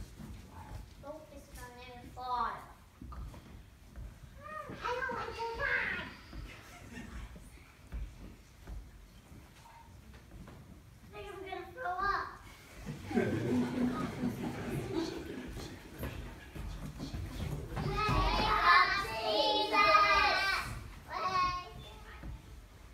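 Children talk and call out excitedly nearby.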